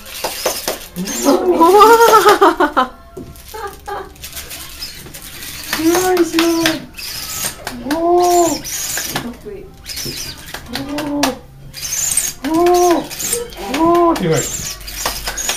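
A toddler blows a toy whistle, making short wavering tooting notes.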